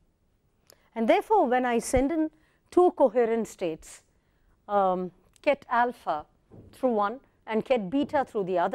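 A woman speaks calmly into a close microphone, explaining.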